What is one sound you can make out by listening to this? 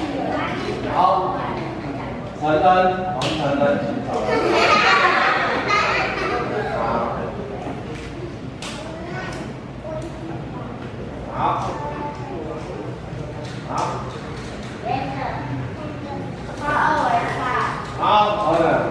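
Young children chatter and call out.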